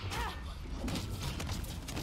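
A fiery blast bursts loudly.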